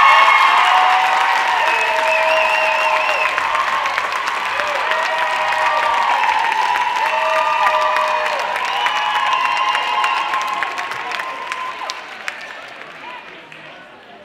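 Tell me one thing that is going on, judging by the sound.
Many feet stomp and tap on a stage in a large hall.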